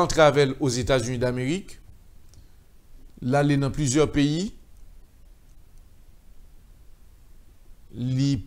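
A middle-aged man speaks calmly and clearly into a microphone, in short phrases with pauses.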